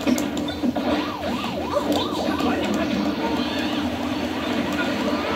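Video game sound effects chirp and pop from a television.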